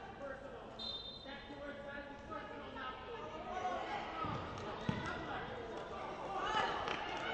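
Young women shout and call out across a large echoing gym.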